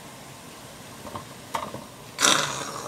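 Dry noodle blocks drop into a pot of liquid with a splash and a clatter.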